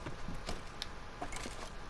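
Items rattle as a hand rummages inside a chest.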